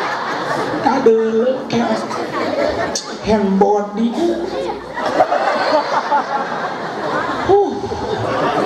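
A middle-aged man preaches animatedly through a microphone, his voice booming over loudspeakers.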